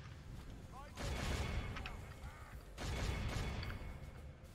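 A distant battle rumbles with clashing troops.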